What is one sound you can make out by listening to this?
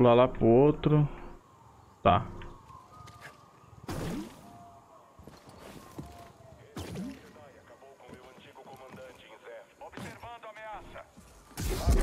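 A man speaks calmly in bursts, close to a headset microphone.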